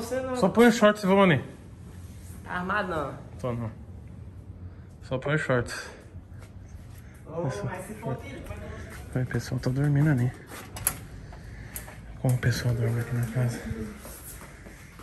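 A young man talks nearby with animation.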